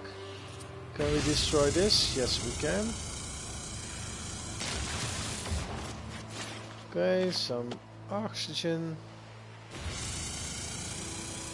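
A laser beam hums and crackles as it cuts into a tree.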